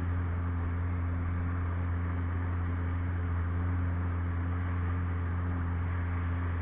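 A boat motor drones steadily.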